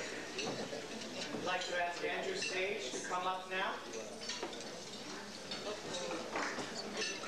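Elderly men talk and laugh together close by.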